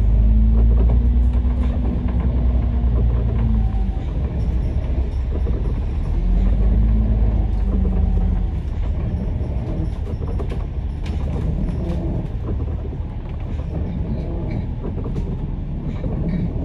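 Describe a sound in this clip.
Vehicle tyres hiss on a wet road.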